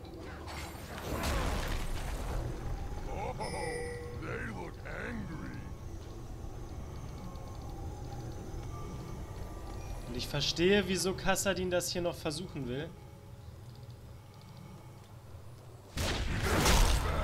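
Game sound effects of spells and hits crackle and whoosh.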